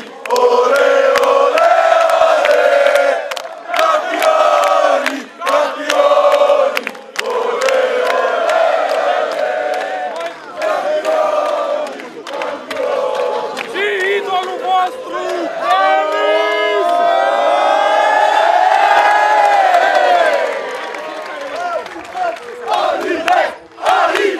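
A large crowd of fans chants loudly outdoors.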